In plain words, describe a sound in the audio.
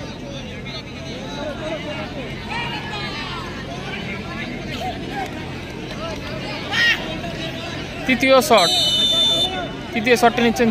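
A large outdoor crowd chatters and shouts excitedly.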